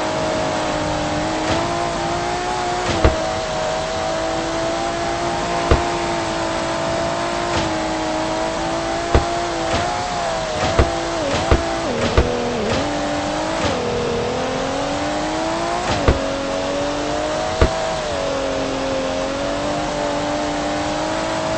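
A car engine drones steadily, its pitch dipping and rising as it speeds up and slows down.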